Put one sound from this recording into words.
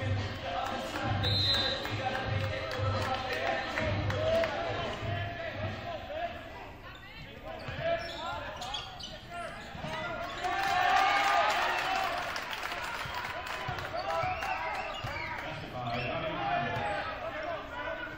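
A basketball bounces on a hard court in a large echoing gym.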